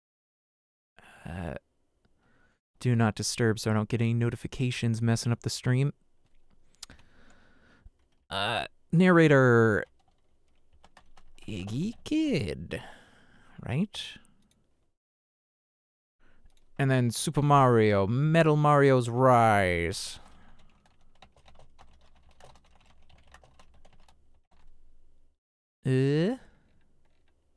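A man speaks with animation into a close microphone.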